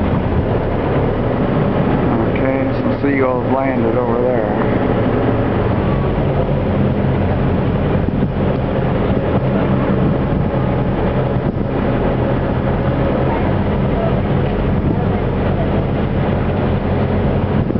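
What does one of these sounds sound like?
Choppy waves slosh and splash.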